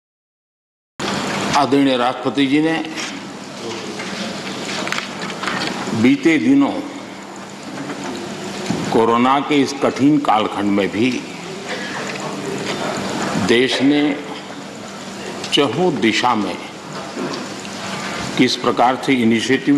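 An elderly man speaks steadily and forcefully into a microphone.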